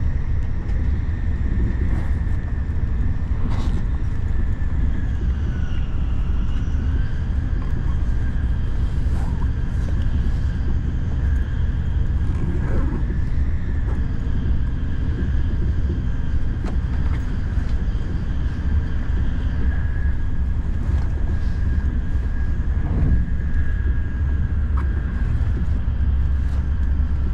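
A train's motor whines with a steady high hum that dips and rises.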